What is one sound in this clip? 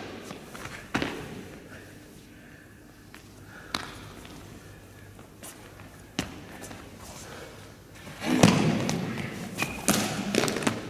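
A body thuds onto a hard floor.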